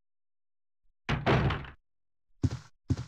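A heavy door thuds shut.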